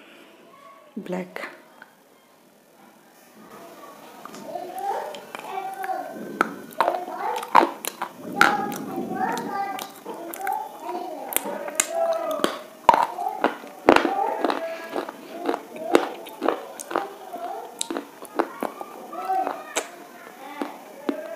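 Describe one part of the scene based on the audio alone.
A woman crunches and chews food close to the microphone.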